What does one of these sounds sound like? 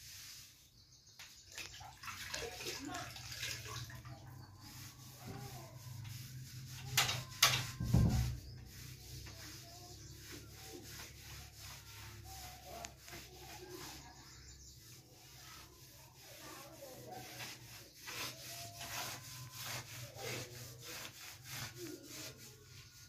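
A cloth rubs and scrubs against a wooden door.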